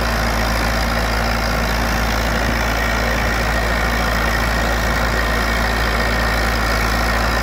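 A tractor engine runs loudly and steadily close by.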